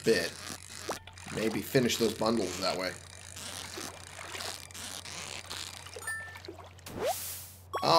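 A fishing reel clicks and whirs as a line is reeled in.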